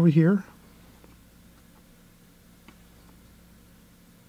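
A paintbrush dabs and strokes softly on paper.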